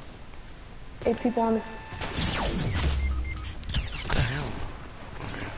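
Gunshots crack in quick bursts nearby.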